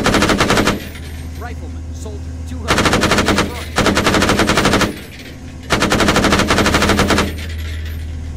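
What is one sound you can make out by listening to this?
A heavy gun fires in rapid, loud bursts.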